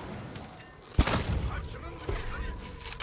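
Fire bursts and roars.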